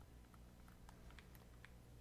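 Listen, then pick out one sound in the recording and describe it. Flames burst and crackle.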